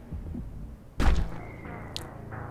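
Gunshots crack sharply nearby.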